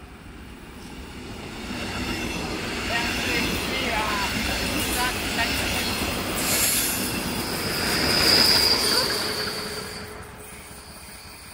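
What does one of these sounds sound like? A passenger train rumbles past close by on the tracks, building up and then fading away.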